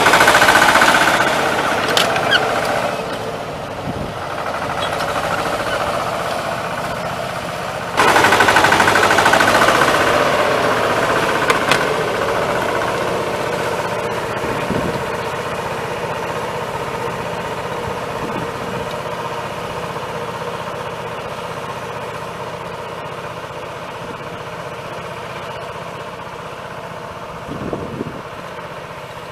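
A small farm tractor engine runs under load and fades as it moves away.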